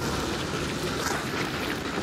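A burst of fire roars and crackles.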